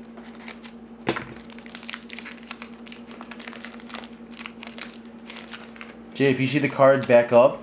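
A foil card wrapper crinkles and rustles in gloved hands.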